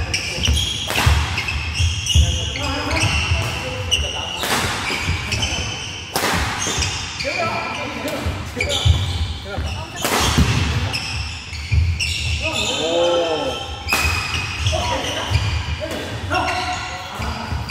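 Badminton rackets sharply strike a shuttlecock back and forth in an echoing hall.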